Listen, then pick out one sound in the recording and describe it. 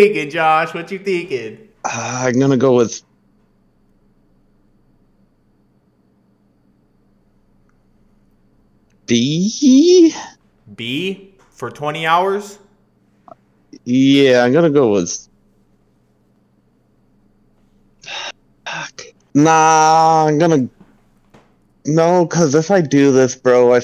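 A young man talks with animation into a close microphone, pausing often.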